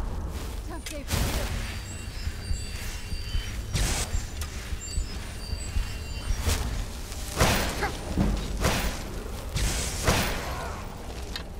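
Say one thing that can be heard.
Heavy blows strike with sharp thuds.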